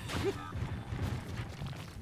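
A weapon whooshes through the air.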